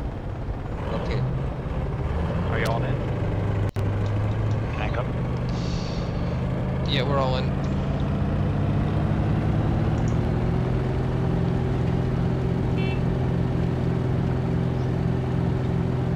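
A vehicle engine hums steadily from inside the cabin.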